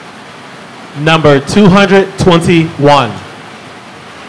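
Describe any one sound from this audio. A man speaks briefly into a microphone over loudspeakers in a large hall.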